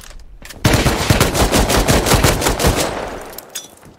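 A rifle fires in rapid bursts with loud, echoing shots.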